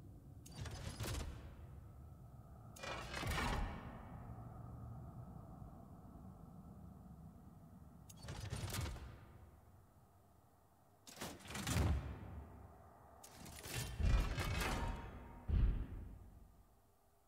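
Short whooshing swishes sound as menu items are switched.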